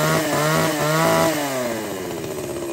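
A chainsaw engine revs up high and drops back.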